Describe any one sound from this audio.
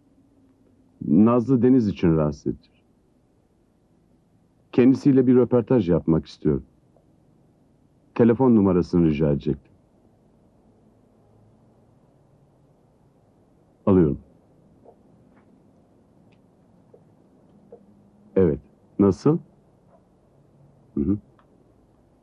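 A middle-aged man speaks into a telephone in short bursts, with pauses between.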